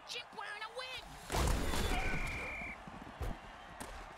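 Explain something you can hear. Armoured players crash heavily into each other.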